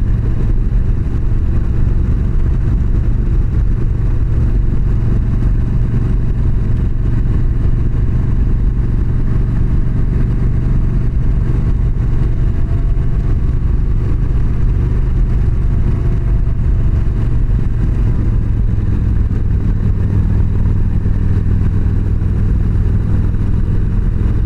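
A motorcycle engine rumbles steadily up close.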